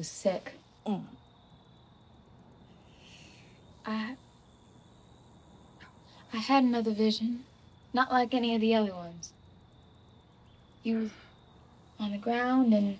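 A young boy speaks in short, emotional bursts close by.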